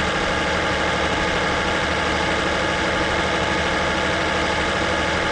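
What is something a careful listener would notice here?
A truck engine hums steadily at cruising speed.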